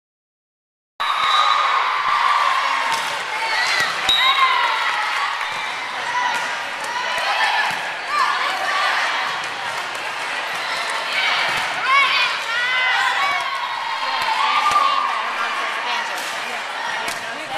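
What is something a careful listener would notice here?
A volleyball thuds off players' forearms and hands in an echoing gym.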